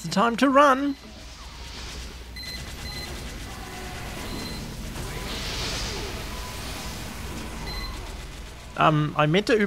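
A flamethrower roars in a steady rush.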